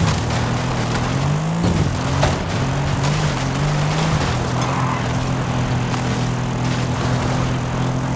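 Tyres rumble over dirt.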